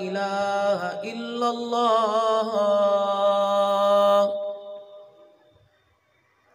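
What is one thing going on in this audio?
A man chants in a long, drawn-out melodic voice through a loudspeaker, then the sound fades into an echo.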